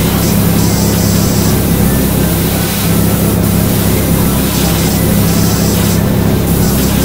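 A pressure washer sprays water in a steady hissing rush.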